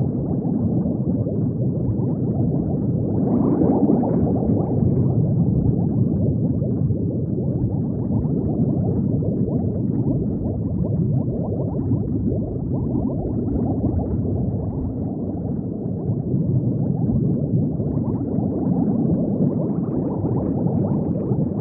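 Bubbles gurgle and burble steadily underwater.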